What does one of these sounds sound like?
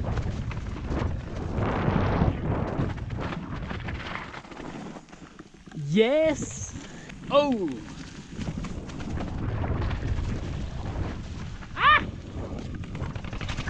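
Bicycle tyres rumble and crunch over a dry, leafy dirt trail.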